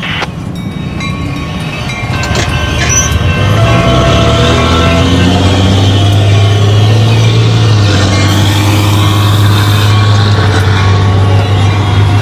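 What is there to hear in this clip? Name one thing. A train rumbles past over the tracks.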